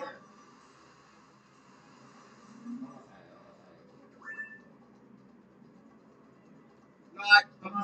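Quiet video game sound effects play from a television speaker.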